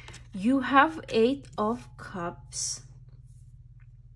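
A card slaps softly onto a table.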